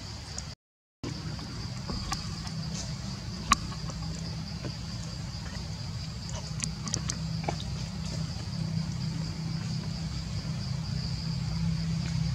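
A baby monkey suckles with soft, wet smacking sounds.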